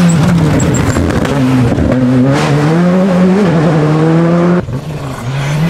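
A rally car engine pops and bangs on the overrun.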